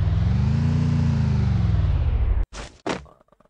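A car engine drones loudly and drops in pitch.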